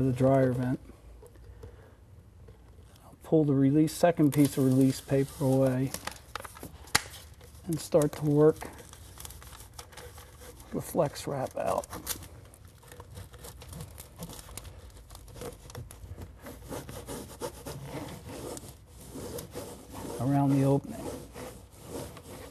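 A stiff plastic sheet rustles and crinkles.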